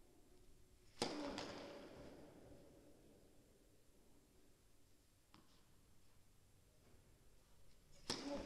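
A tennis racket hits a ball with a sharp pop that echoes through a large hall.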